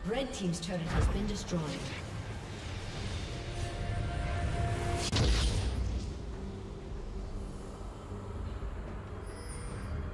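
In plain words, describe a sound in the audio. Game sound effects crackle and whoosh.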